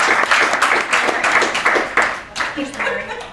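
An audience claps and cheers in a room.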